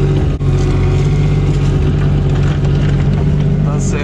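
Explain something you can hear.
An excavator bucket scrapes and digs into soil.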